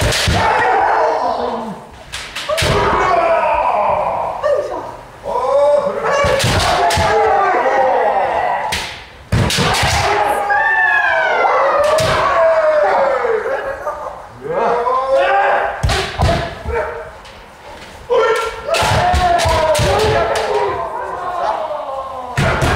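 Kendo fighters shout loud, drawn-out battle cries in a large echoing hall.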